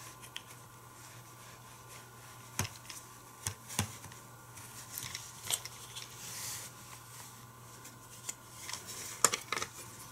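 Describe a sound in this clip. Plastic toy track pieces click and clack as they are fitted together.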